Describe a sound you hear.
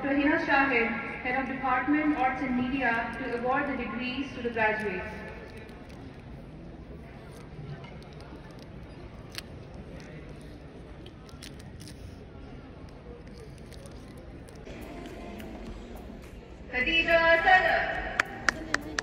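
A man speaks over a loudspeaker in a large echoing hall, announcing.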